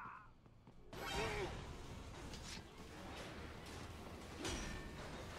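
Metal blades clash and ring.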